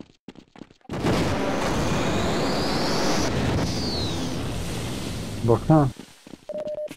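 An energy gun fires a loud, crackling, buzzing beam.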